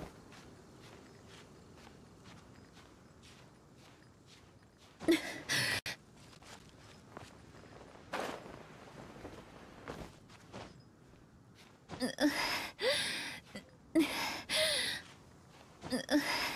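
Light footsteps scrabble on rock during a climb.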